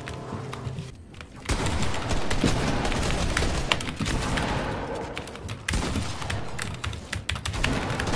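Building pieces clack rapidly into place.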